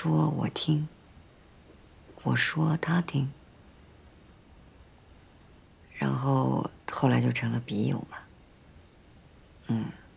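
A woman speaks calmly and close by, in short phrases.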